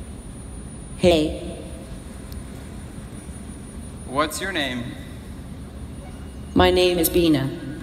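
A woman speaks in short phrases over a loudspeaker in a large echoing hall.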